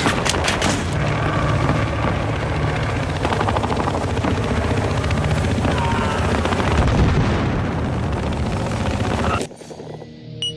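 A fire roars steadily.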